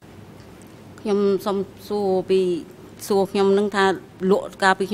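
An older woman speaks steadily into a microphone.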